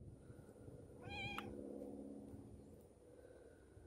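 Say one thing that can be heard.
A pig grunts softly.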